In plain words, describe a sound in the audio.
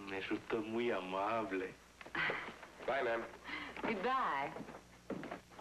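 A woman speaks brightly, close by.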